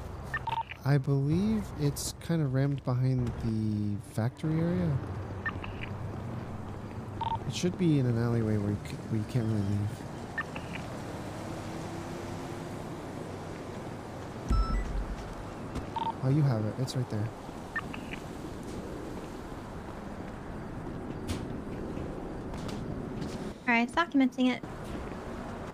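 A man speaks urgently over a police radio.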